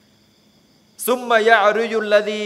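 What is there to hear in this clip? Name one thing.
A middle-aged man speaks calmly and close into a microphone.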